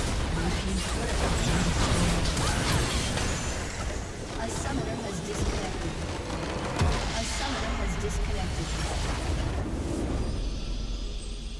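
Game combat effects crash and clash loudly.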